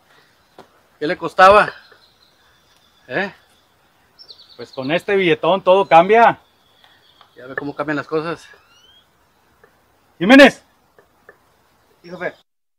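A man speaks firmly and loudly nearby.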